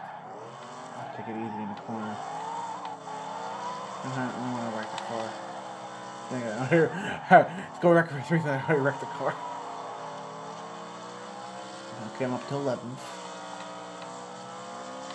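A racing car engine drones steadily and shifts in pitch.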